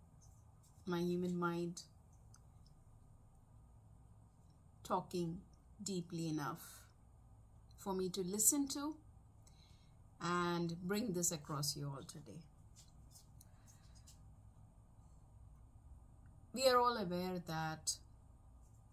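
A middle-aged woman speaks calmly and close up, in short phrases with pauses.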